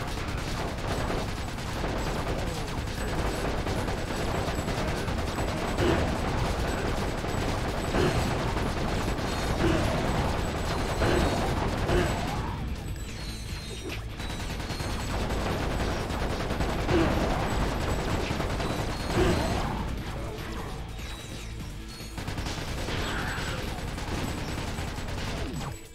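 Game guns fire in rapid bursts.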